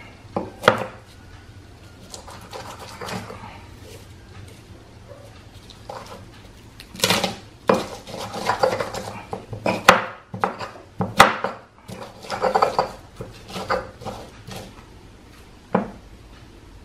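A stone pestle pounds and grinds garlic in a stone mortar with dull knocks.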